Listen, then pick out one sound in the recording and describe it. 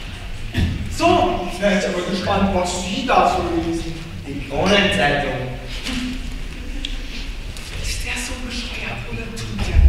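A teenage boy speaks with animation in a large echoing hall.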